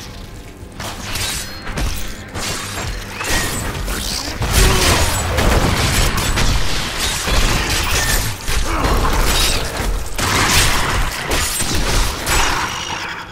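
Magic spells whoosh and blast in quick bursts.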